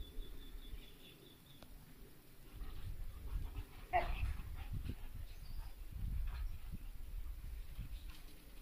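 Two dogs growl and tussle playfully.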